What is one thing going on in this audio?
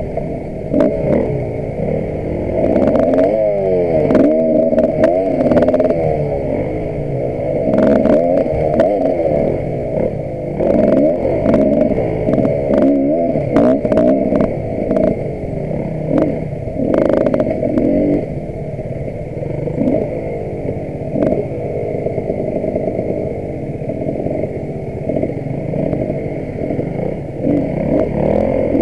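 A dirt bike engine revs and whines up close throughout.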